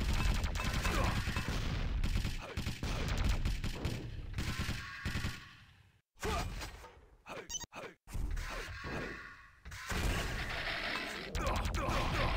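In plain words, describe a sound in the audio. Weapons fire with sharp blasts in a video game.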